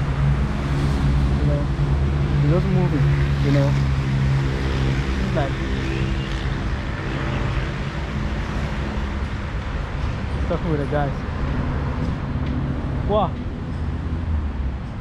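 A man talks calmly, close to the microphone.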